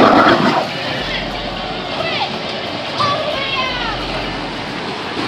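Water splashes and churns steadily around a small boat.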